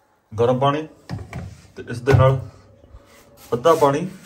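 A glass mug knocks lightly as it is lifted from a table.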